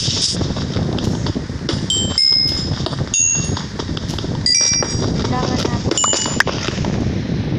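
A pickaxe taps and scrapes repeatedly against stone.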